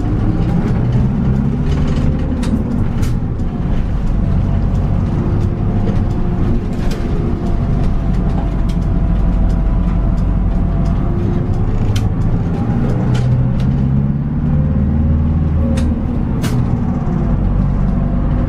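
A diesel city bus engine drones, heard from inside the bus.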